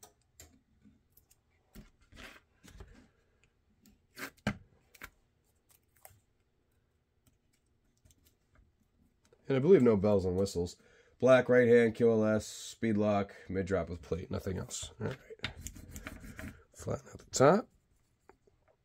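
Masking tape crinkles and peels as hands press it down.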